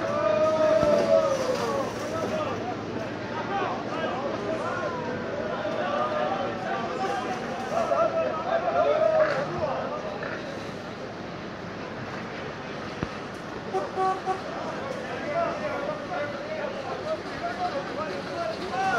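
A crowd of men talk and shout over one another outdoors.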